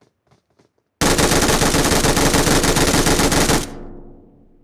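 A rifle fires loudly with a sharp crack.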